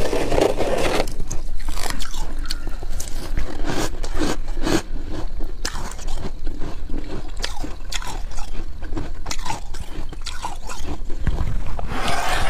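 Hands scrape and crunch through thick frost.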